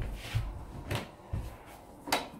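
A door handle clicks as it is pressed down.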